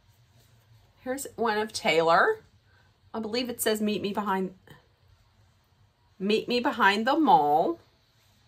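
A woman speaks close to a microphone, in short phrases with pauses.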